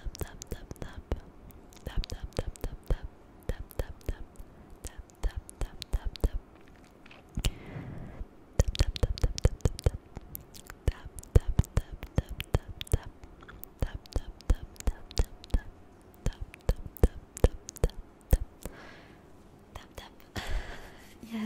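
Fingers tap and brush close against a microphone in quick, uneven clicks.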